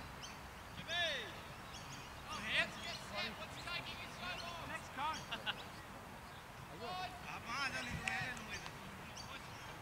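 Men talk in the distance outdoors.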